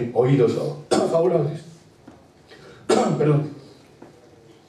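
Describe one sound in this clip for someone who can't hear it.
An elderly man coughs loudly into a nearby microphone.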